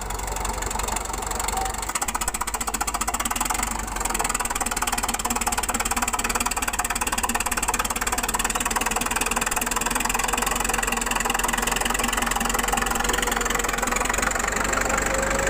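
A crawler bulldozer's diesel engine runs under load.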